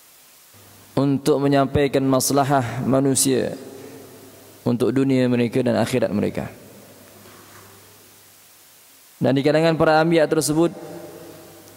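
A man chants in a melodic voice through a microphone, in phrases with pauses between them.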